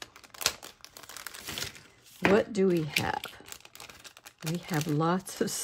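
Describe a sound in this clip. Thin plastic crinkles and rustles as it is handled.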